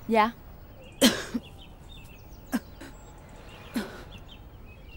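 A woman's breath rasps sharply.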